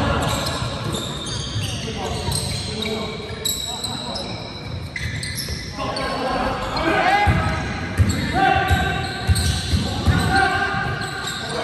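Sneakers squeak sharply on a hard court floor in a large echoing hall.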